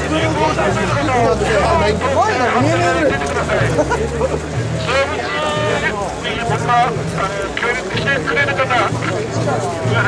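A large crowd of men chants loudly in rhythm outdoors.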